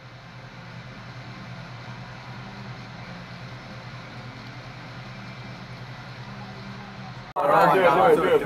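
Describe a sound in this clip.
Music plays faintly from a television loudspeaker.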